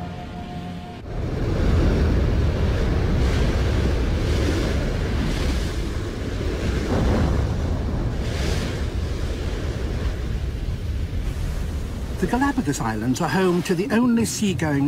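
Heavy ocean waves crash and roar against rocks.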